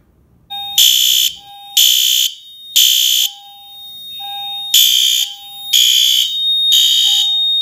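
A fire alarm sounder gives a steady high beep.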